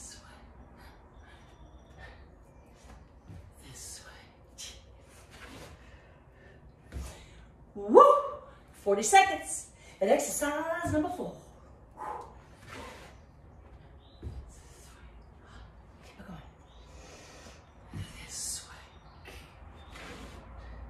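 Feet thump softly on the floor as a woman exercises.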